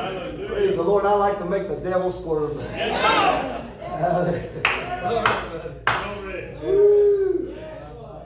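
A middle-aged man speaks with animation to an audience in a room.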